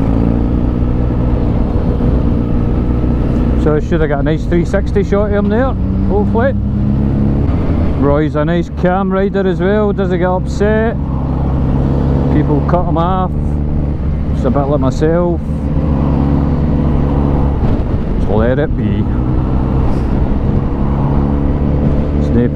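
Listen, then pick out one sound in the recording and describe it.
A motorcycle engine hums steadily at speed.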